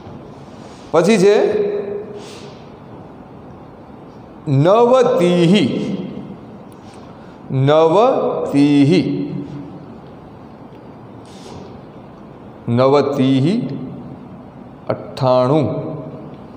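A man speaks calmly in short phrases through a clip-on microphone.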